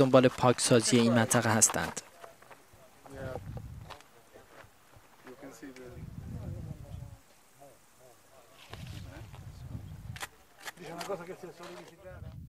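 A man speaks calmly outdoors.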